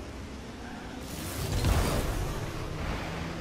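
A rocket boost roars in a short burst.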